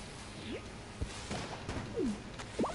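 An explosion bursts with a short boom.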